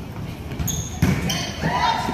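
A volleyball is bumped with a thud.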